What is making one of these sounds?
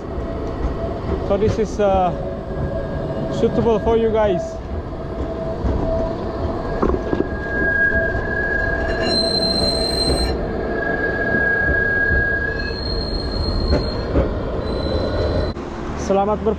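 A tram hums and rolls along close by.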